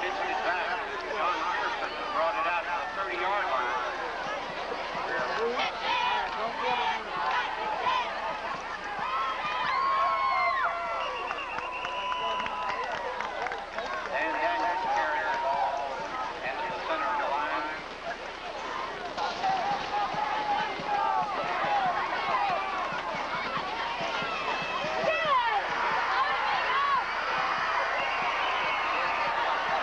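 A large crowd cheers and chatters loudly outdoors.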